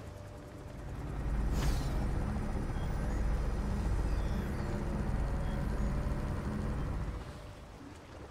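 Large machines hum with a deep, steady drone.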